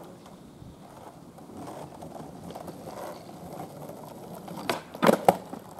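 Skateboard wheels roll on rough asphalt, drawing closer.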